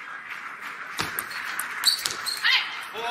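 A table tennis ball clicks sharply off paddles and the table.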